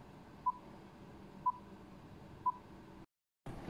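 A short beep sounds once a second in a countdown.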